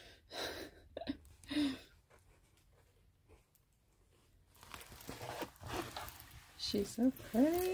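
A plastic sheet crinkles and rustles as hands handle it.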